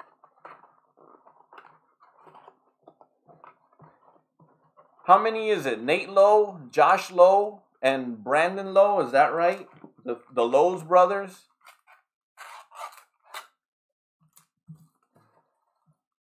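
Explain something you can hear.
Cardboard and foil wrappers crinkle and tear in someone's hands.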